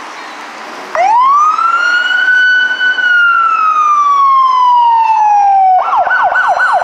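A police siren wails close by, rising and then slowly falling.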